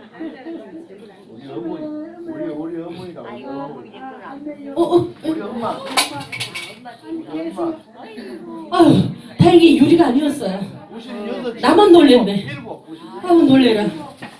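A woman sings into a microphone through a loudspeaker in an echoing hall.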